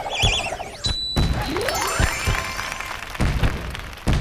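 Quick chiming tones tick up as points are tallied.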